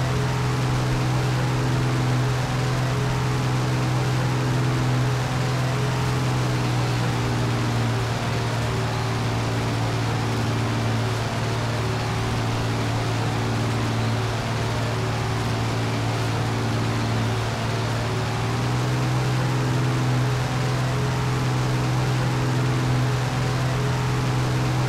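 Propeller engines drone steadily and loudly.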